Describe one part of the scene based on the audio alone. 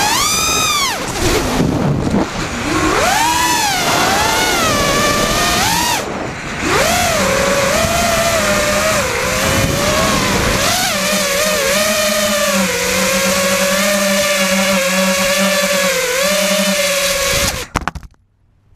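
A small drone's motors whine loudly, rising and falling in pitch as it flies, then cut off suddenly.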